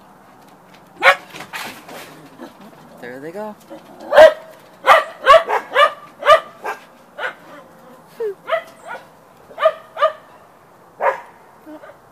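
A dog barks repeatedly.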